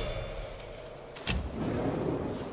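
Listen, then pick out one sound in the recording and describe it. A staff whooshes and strikes hard in a fight.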